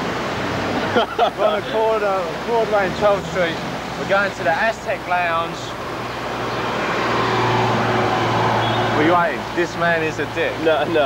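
A young man talks close up with animation.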